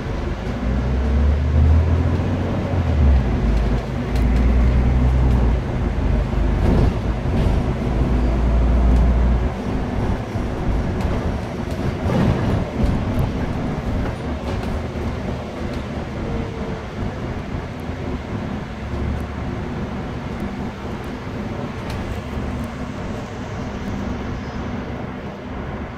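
The bus interior rattles and clatters over the road.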